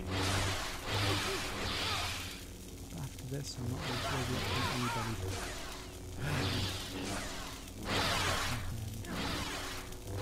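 Swords clash.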